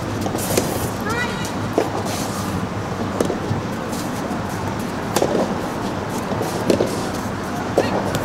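A racket hits a soft tennis ball back and forth in sharp pops.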